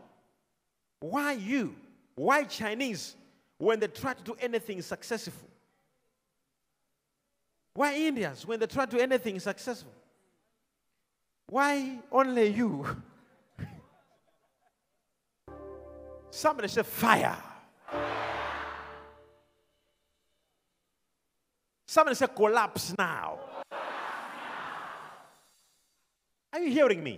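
A man preaches loudly and with passion into a microphone, heard over loudspeakers.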